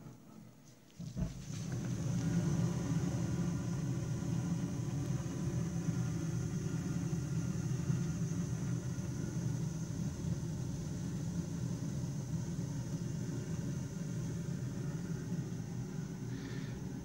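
A boiler hums and rumbles steadily.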